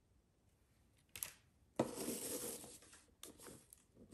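A ribbon slides and rustles against a cardboard box.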